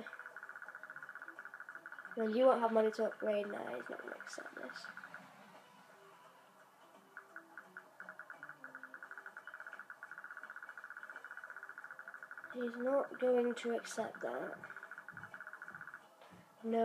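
A game menu ticks rapidly as a counter rolls up.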